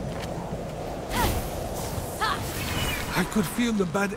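A magic blast crackles and bursts.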